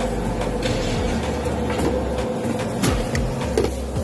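Aluminium foil crinkles as hands wrap flatbread.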